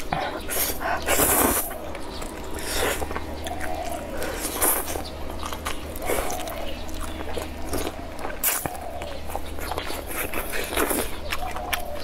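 A young woman slurps noodles loudly.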